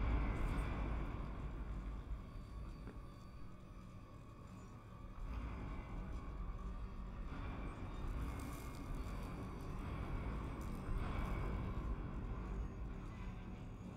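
Heavy gears rumble and grind steadily.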